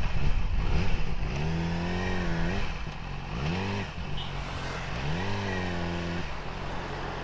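A motorcycle engine revs up and down.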